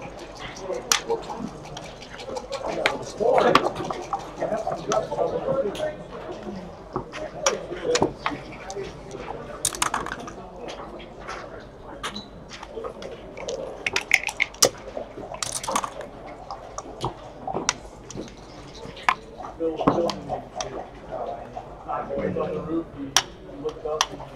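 Plastic checkers click and slide on a game board.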